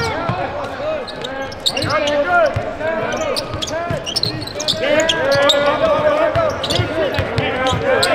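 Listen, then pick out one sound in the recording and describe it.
Sneakers squeak sharply on a hardwood court in a large echoing arena.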